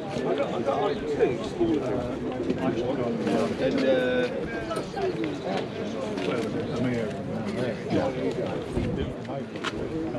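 Other voices chatter nearby outdoors.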